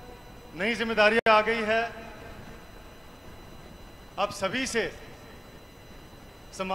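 A young man speaks loudly and forcefully into a microphone, heard through loudspeakers outdoors.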